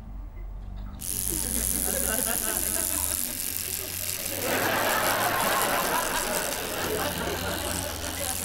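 An electric toothbrush buzzes steadily.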